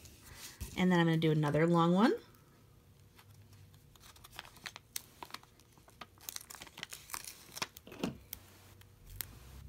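Thin plastic sheets tap and rustle as hands handle them.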